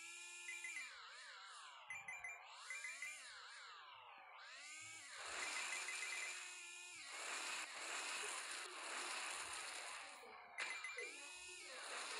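A video game motorbike engine revs up and down.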